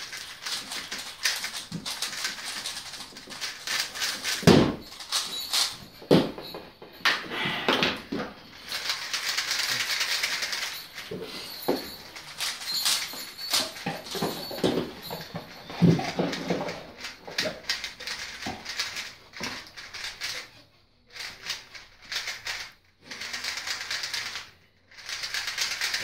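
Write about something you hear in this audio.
Plastic puzzle cubes click and rattle as they are twisted quickly.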